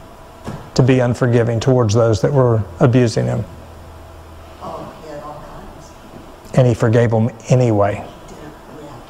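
A middle-aged man speaks calmly into a microphone, in short phrases with pauses, in a room with a slight echo.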